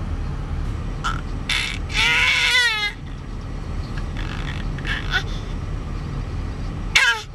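A baby coos and squeals with delight close by.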